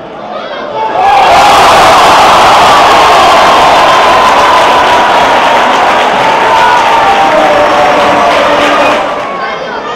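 Men on a playing field shout and cheer loudly outdoors.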